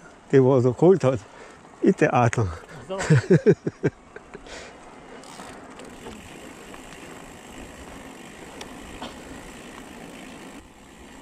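Bicycle tyres roll steadily over a gravel road.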